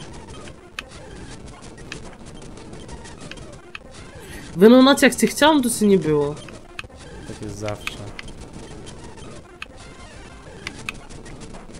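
Chiptune game music plays with short beeps.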